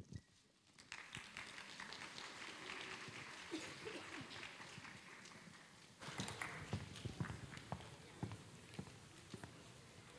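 An audience murmurs and chatters in a large hall.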